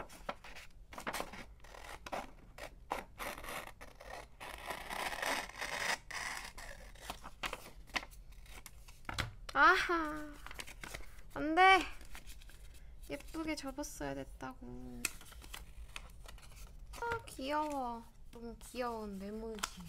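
Paper rustles and crinkles as sheets are handled up close.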